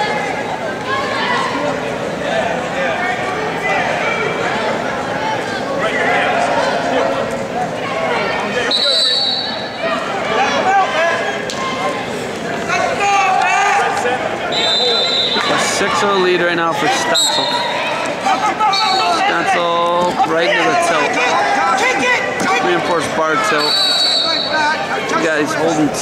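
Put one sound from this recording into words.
A crowd murmurs and cheers throughout a large echoing arena.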